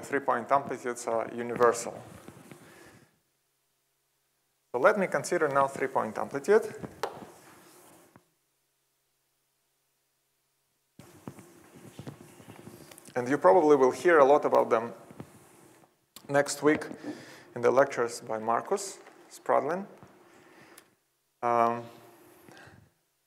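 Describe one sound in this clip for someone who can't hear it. A man lectures through a microphone in a large hall, speaking in bursts with pauses.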